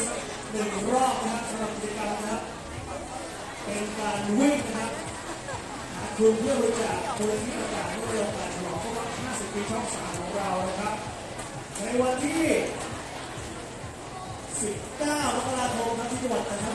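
A large crowd of young women chatters and cheers close by.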